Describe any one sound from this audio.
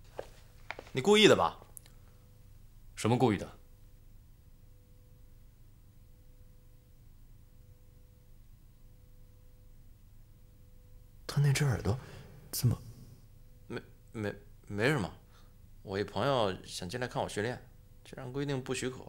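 A young man speaks calmly and coolly, close by.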